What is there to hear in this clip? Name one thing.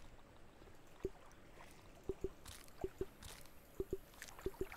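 Soft menu clicks tick now and then.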